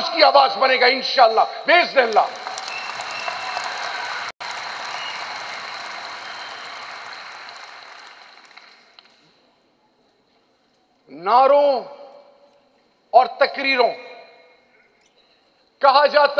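A man speaks forcefully through a loudspeaker in a large echoing hall.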